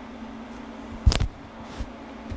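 A man claps his hands once.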